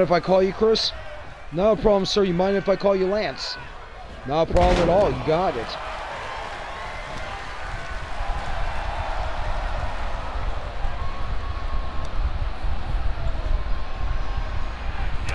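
A crowd cheers and murmurs in a large hall.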